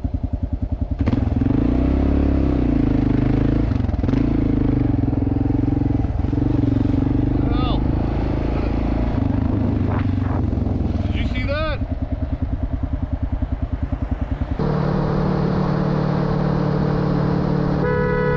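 A motorcycle engine revs hard and roars as the bike speeds up.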